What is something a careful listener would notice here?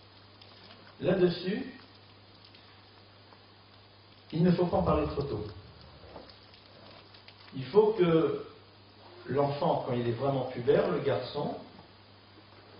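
A middle-aged man speaks with animation into a microphone, in short phrases separated by pauses.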